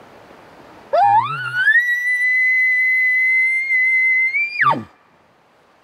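A man blows a game call that rises into a long, high, shrill whistle and then drops off sharply.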